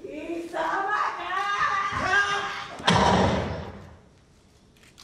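A young woman shouts dramatically.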